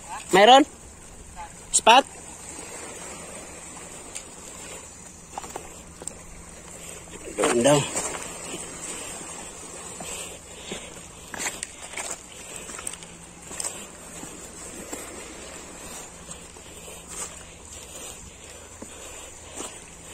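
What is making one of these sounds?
Small waves lap gently against a rocky shore.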